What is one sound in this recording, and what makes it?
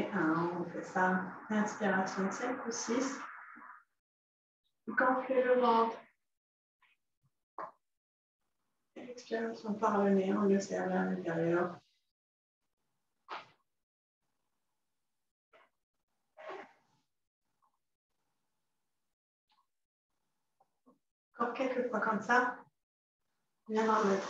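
A woman speaks calmly and clearly close to a microphone.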